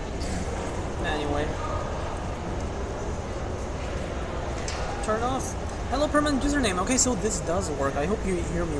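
A young woman talks close by, with animation.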